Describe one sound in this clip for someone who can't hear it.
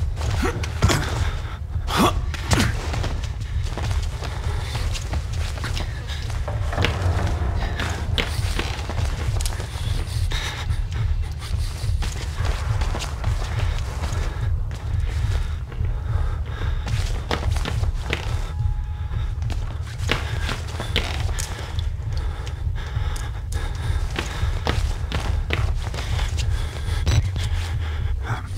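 Footsteps creak on old wooden floorboards.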